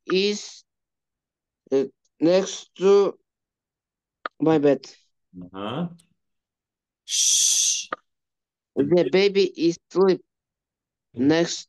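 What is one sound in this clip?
A man speaks calmly and slowly through a microphone, in short phrases with pauses.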